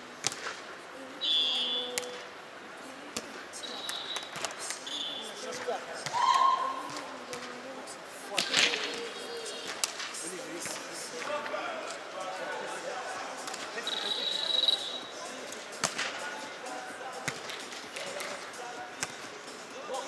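A volleyball is struck with sharp thumps.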